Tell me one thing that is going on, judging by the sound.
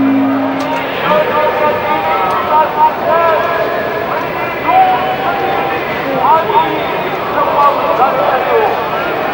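A large crowd murmurs and calls out far below in the open air.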